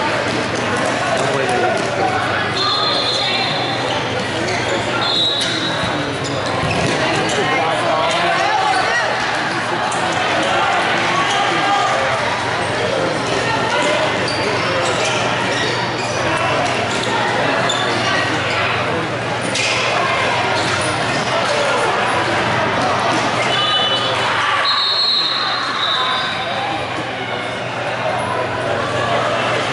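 Young players shout to one another across an echoing hall.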